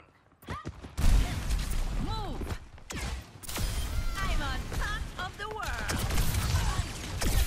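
A gun fires rapid bursts with loud blasts.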